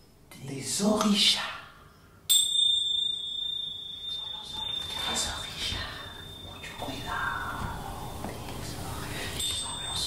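A young woman speaks along in unison.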